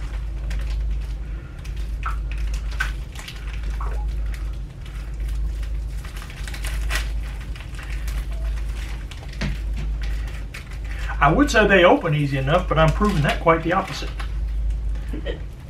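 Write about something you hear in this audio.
Paper rustles and crinkles close by.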